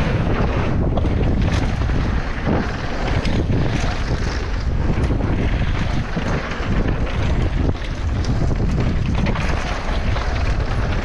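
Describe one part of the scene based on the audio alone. A bicycle frame clatters and knocks over bumps.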